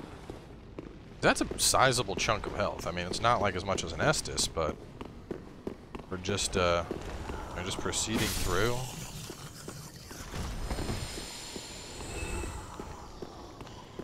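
Footsteps clatter on stone.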